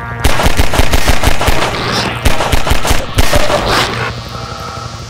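A pistol fires rapid shots that echo in a tunnel.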